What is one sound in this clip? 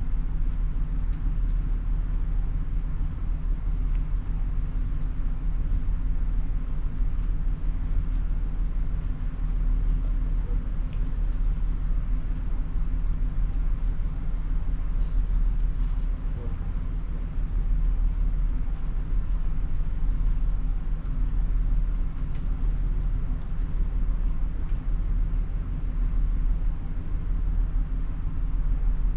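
Wind blows steadily across a microphone outdoors.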